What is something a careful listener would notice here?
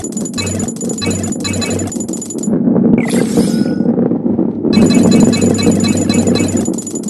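Coins chime as a ball collects them.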